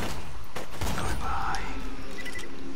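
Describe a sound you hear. A bright jingle rings out.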